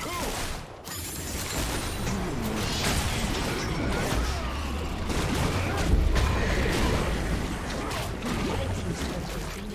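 Magic spells crackle and blows thud in a fast fight.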